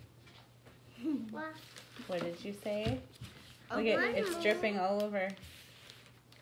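A young boy talks and laughs excitedly close by.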